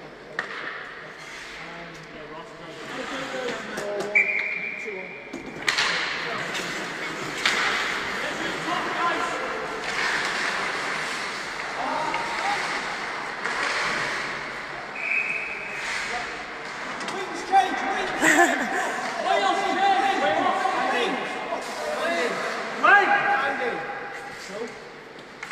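Ice skates scrape and hiss across the ice in a large echoing arena.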